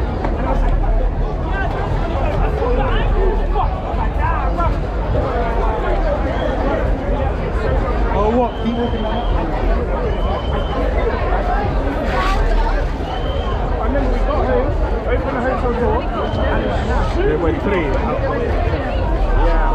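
A large crowd of men and women chatters loudly all around, outdoors.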